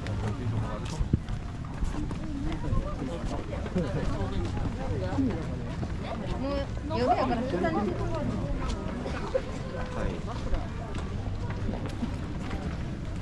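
Footsteps shuffle on a paved path.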